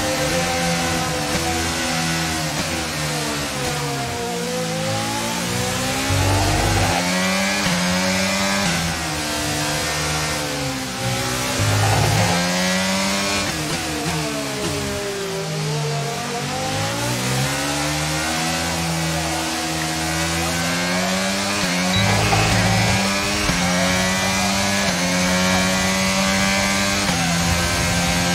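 A racing car engine roars loudly, its pitch climbing and dropping as it revs up and shifts gears.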